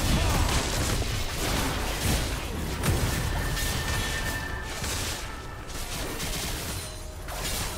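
Game characters' attacks clash with sharp hits.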